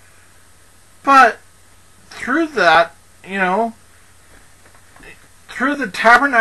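A man speaks slowly and calmly, close to a microphone, with pauses.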